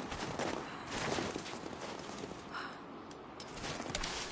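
A heavy body drops from a tree and lands with a thud.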